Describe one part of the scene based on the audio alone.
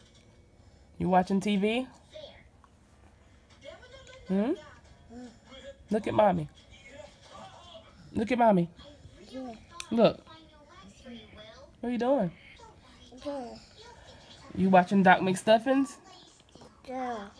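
A baby babbles and squeals close by in short bursts.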